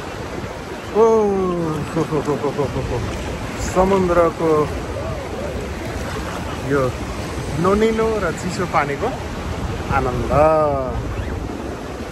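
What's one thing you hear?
A middle-aged man talks animatedly close to the microphone.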